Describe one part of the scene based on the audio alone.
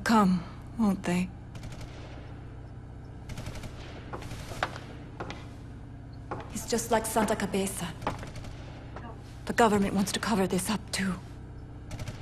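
A young woman speaks softly and wistfully.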